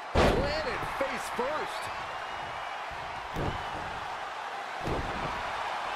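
Heavy thuds land on a wrestling ring mat.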